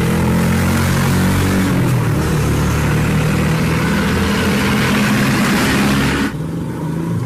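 Car engines rumble loudly as traffic passes close by.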